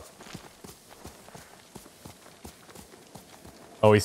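A horse's hooves thud softly on grass.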